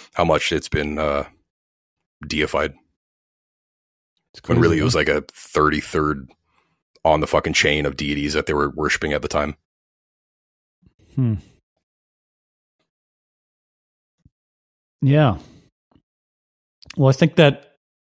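A man talks calmly through a microphone, in short bursts with pauses.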